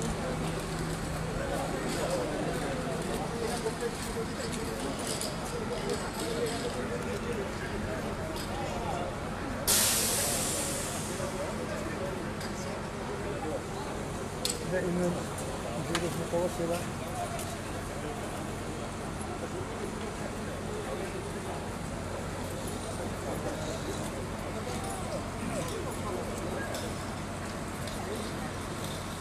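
Men talk nearby outdoors.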